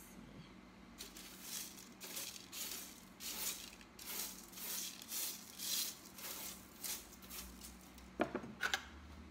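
A crisp sheet of candy crackles as it is lifted and broken.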